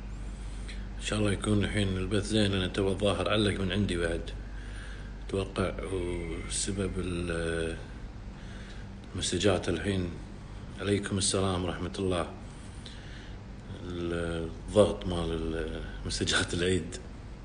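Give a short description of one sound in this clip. A man speaks close to a microphone in a low, serious voice, with pauses.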